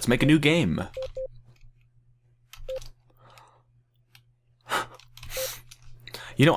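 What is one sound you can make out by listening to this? A game menu gives short soft beeps as the selection changes.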